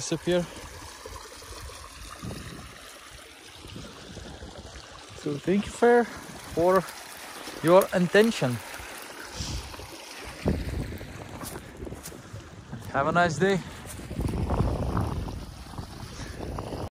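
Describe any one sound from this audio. Water trickles in a shallow stream.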